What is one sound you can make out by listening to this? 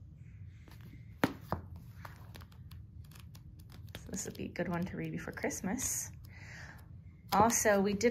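Paper pages riffle and rustle as a paperback book is flipped through.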